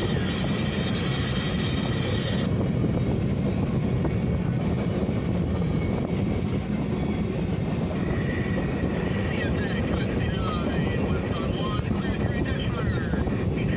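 A freight train rumbles and clatters steadily past, close by.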